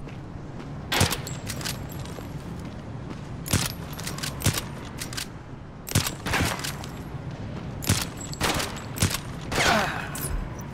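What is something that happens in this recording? Rifle shots crack loudly, one at a time, with short pauses between them.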